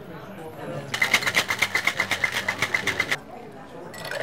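Ice rattles rapidly in a cocktail shaker.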